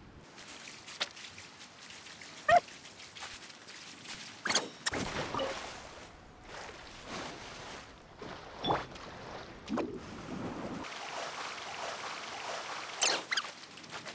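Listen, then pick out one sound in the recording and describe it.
A magical chime shimmers with a sharp burst.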